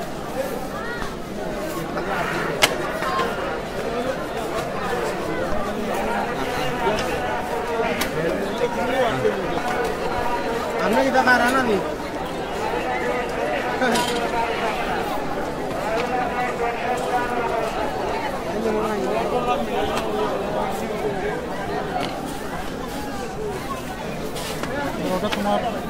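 A large crowd of men chants and sings together outdoors.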